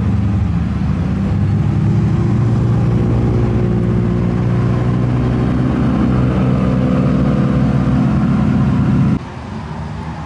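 A sports car's engine roars loudly as it drives past.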